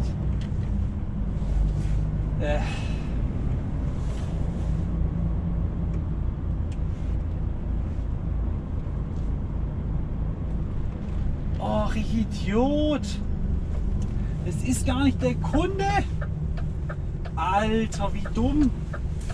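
A truck engine rumbles steadily from inside the cab as the truck drives along a road.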